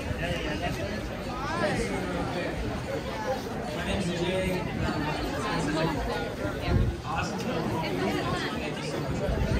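A crowd of men and women chatter all around, close by.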